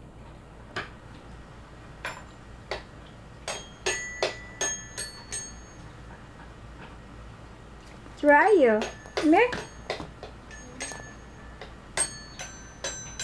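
A spinning toy top clicks and chimes as it whirls.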